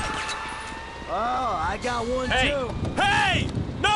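A man yells in protest.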